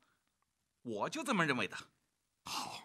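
A middle-aged man speaks insistently, close by.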